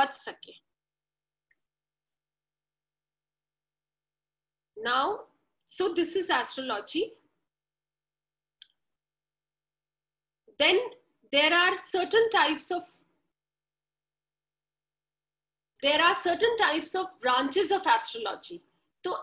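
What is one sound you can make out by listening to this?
A young woman speaks calmly in bursts over an online call.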